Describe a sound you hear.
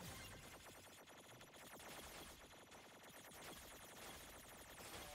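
Many small balls ping and click rapidly.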